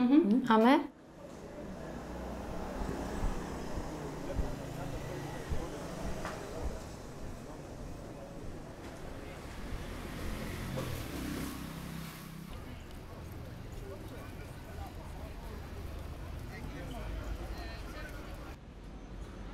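Street noise with distant voices murmurs outdoors.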